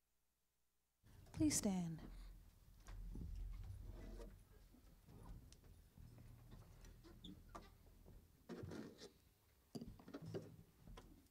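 A keyboard plays.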